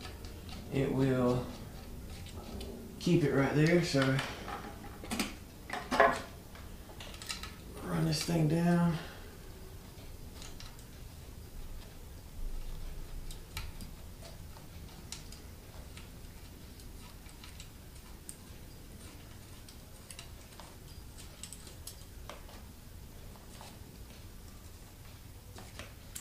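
Metal tools click and clink against an engine block.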